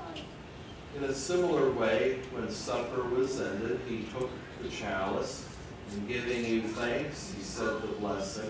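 A man speaks aloud calmly in a small room.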